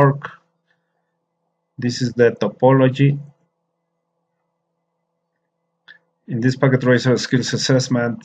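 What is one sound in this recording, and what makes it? A man speaks calmly and close to a microphone, with pauses.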